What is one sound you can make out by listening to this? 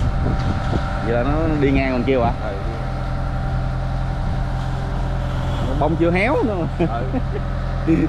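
Hydraulics whine and squeal as an excavator arm moves.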